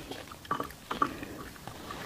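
A woman slurps food into her mouth close to a microphone.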